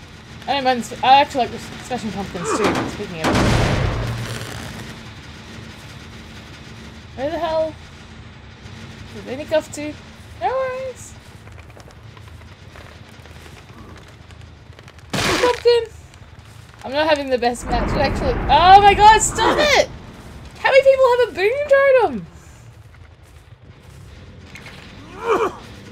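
A woman talks animatedly into a close microphone, in bursts.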